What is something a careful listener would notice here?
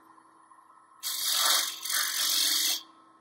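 A chisel scrapes against spinning wood.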